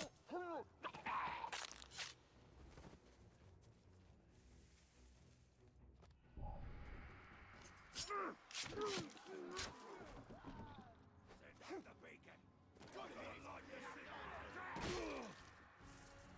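Swords slash and strike in quick blows.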